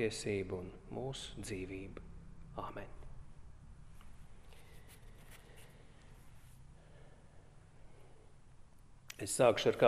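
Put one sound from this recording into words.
A man speaks calmly through a microphone in a room with a slight echo.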